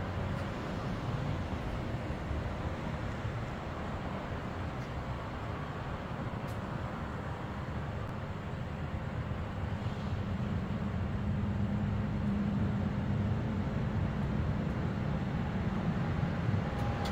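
Fuel hisses steadily through a hose into a tank.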